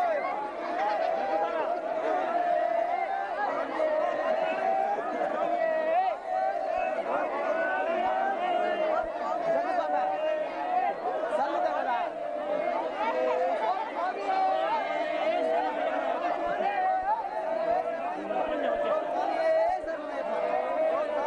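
A large outdoor crowd of men, women and children chatters and calls out loudly.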